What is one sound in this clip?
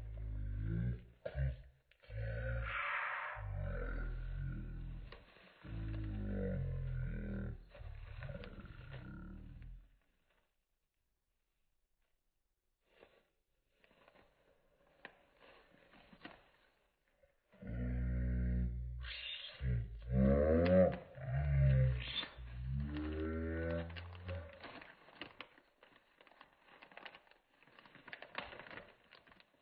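Plastic bags crinkle and rustle.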